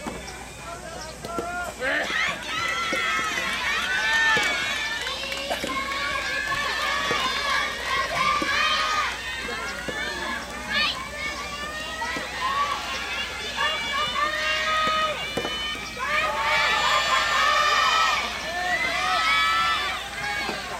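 Young women shout and cheer from a distance, outdoors.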